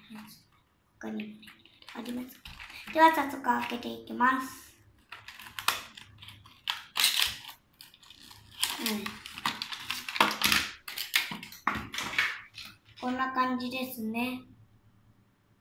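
A young girl talks calmly close by.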